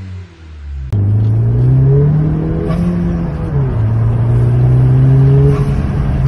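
A car engine roars loudly as the car speeds along.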